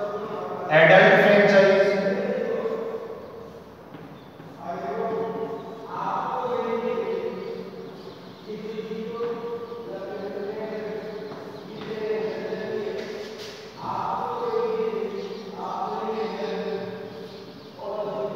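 A man speaks steadily and calmly, as if explaining, heard close through a small microphone.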